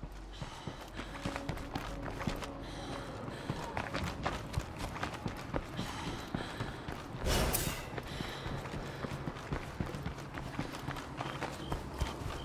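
Footsteps thud quickly on the ground as a man runs.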